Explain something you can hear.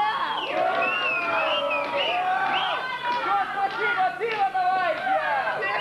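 An electric guitar plays loud, bending notes through amplifiers.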